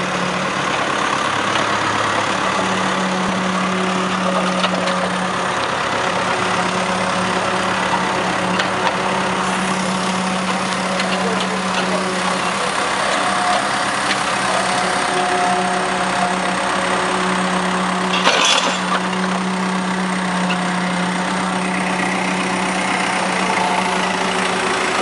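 A diesel engine of a backhoe loader rumbles steadily close by.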